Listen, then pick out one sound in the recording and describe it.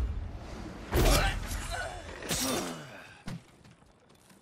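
Debris crashes and scatters.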